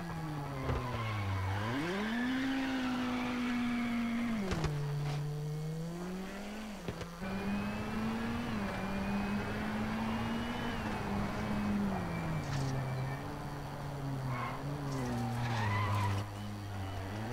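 Tyres skid and scrabble on the road surface.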